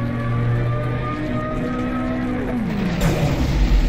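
A huge walking machine drones with a low, wavering hum.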